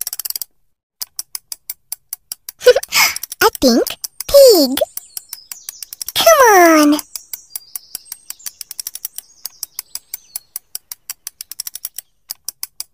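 A wind-up toy clicks rapidly and steadily.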